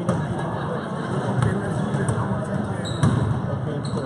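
A basketball bounces on a hard court in a large echoing gym.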